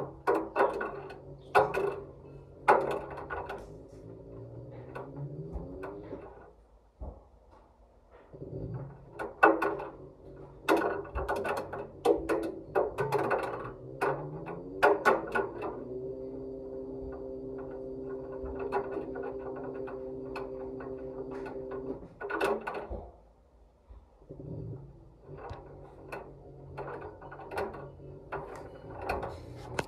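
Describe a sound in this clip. A washing machine drum hums as it turns.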